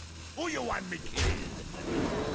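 A heavy impact thuds once.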